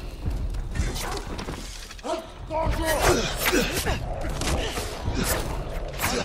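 Footsteps run on stone.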